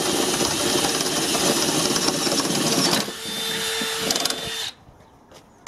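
A cordless drill whirs as it drives a screw into wood.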